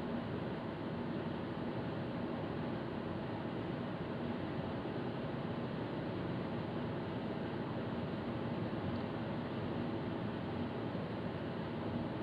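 A car drives steadily along a highway, its engine and tyres rumbling from inside the cabin.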